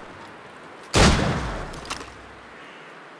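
A loud bang bursts and fades away.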